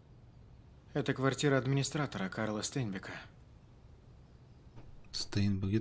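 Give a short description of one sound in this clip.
An older man speaks in a low, calm voice.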